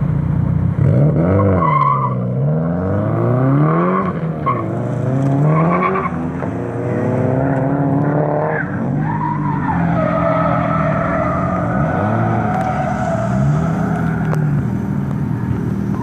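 A car engine revs up and down loudly, over and over.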